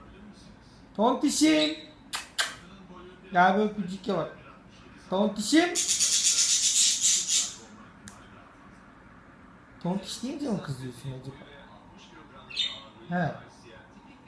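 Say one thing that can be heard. A budgie chirps and warbles close by in bursts.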